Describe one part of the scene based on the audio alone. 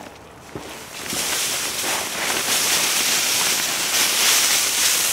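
Dry leaves pour and rustle out of a bin into a wooden box.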